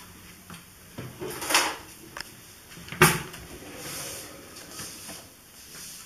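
Pots and pans clatter and knock nearby.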